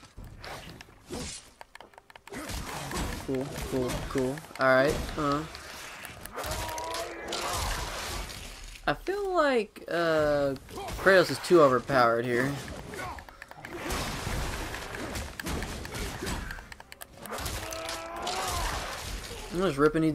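Heavy blows thud and crunch in a fight.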